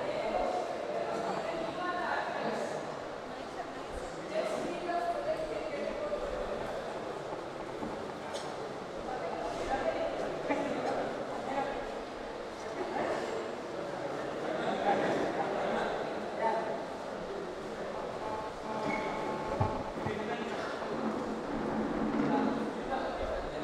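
A crowd of men and women chatter in a busy room.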